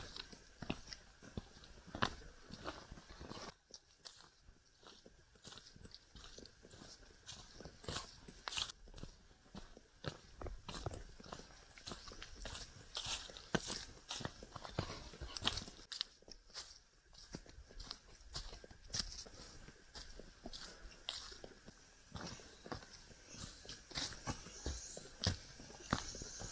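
Footsteps crunch on dry leaves and stones along a forest trail.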